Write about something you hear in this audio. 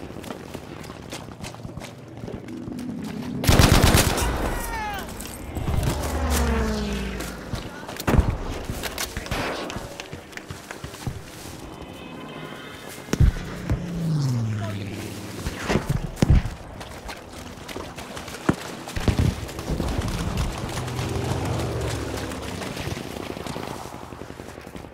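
Footsteps rustle through grass and bushes.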